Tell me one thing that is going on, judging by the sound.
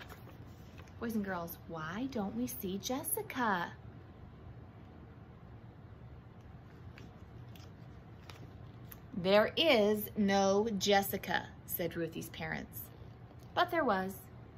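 A woman reads aloud close by.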